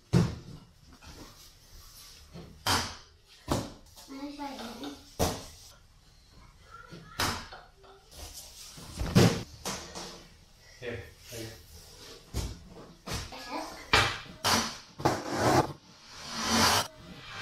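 A young child's feet thump on a padded beam as she jumps.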